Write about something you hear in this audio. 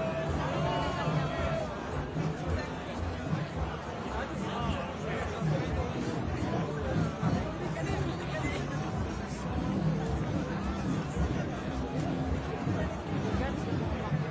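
Many footsteps shuffle on pavement.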